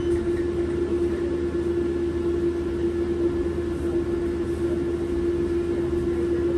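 A bus engine hums steadily with a low drone.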